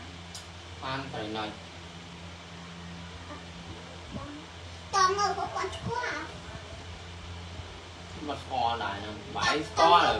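A young child speaks with animation close by.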